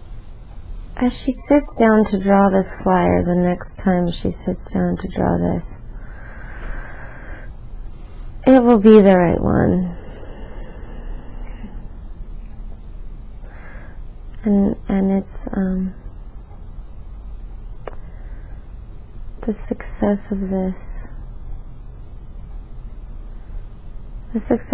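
A woman speaks softly and wearily, close by.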